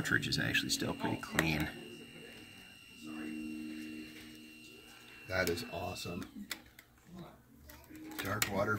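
A plastic tool clicks and rattles in a man's hands.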